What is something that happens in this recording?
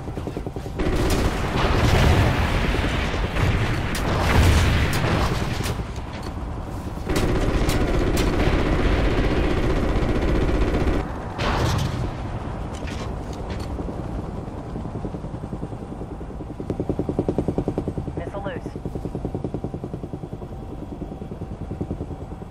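Helicopter rotor blades thump steadily.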